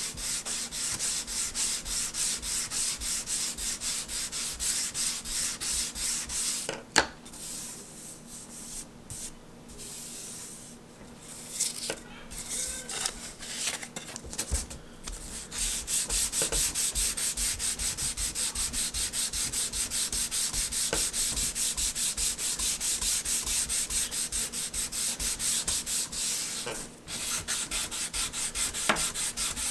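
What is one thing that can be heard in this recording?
A sanding block rubs rapidly back and forth on wood.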